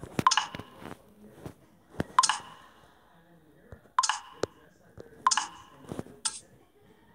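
Short bright chiming clicks sound as buttons are tapped.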